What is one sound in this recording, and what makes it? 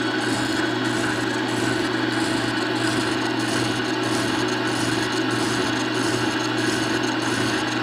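A metal cutter scrapes and grinds against a turning steel shaft.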